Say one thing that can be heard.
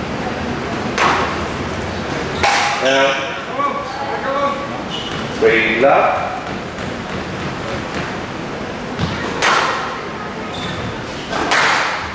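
Squash rackets strike a ball in an echoing hall.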